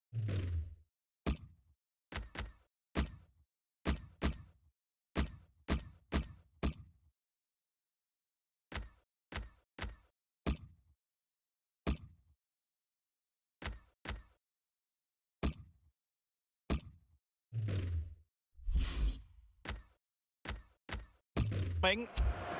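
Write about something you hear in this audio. Short menu clicks and blips sound one after another.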